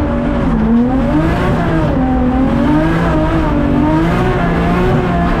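Tyres screech on tarmac.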